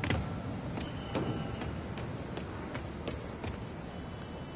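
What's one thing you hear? Quick footsteps patter across a hard rooftop.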